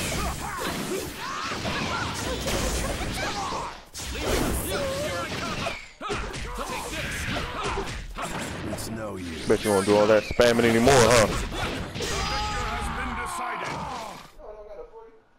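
Punches, blasts and magical attacks crash and whoosh in a video game fight.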